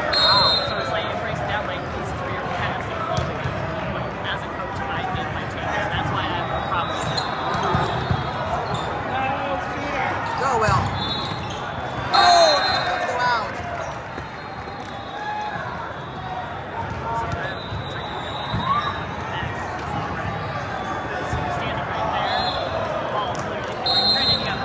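A large crowd chatters throughout a big echoing hall.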